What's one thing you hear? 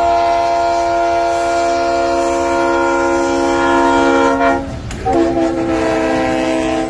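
A train rumbles past close by on the rails.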